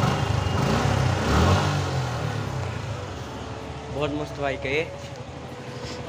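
A motorcycle engine idles with a low rumble.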